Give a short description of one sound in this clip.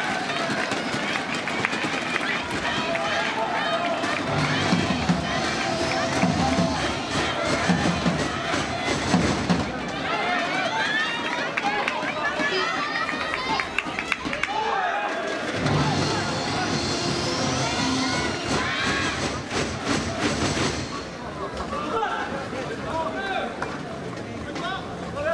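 A large crowd cheers and chants loudly in an echoing hall.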